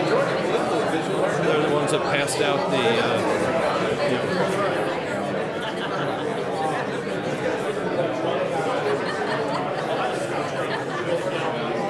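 A man speaks calmly through a microphone in a large room with a slight echo.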